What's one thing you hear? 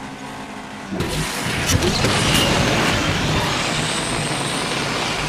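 A loud rushing whoosh of a speed boost bursts in and keeps roaring.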